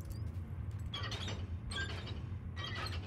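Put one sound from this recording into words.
A heavy metal vault door grinds and clanks open.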